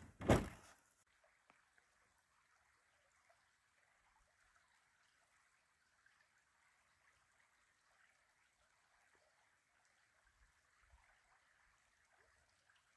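A shallow stream babbles gently over stones outdoors.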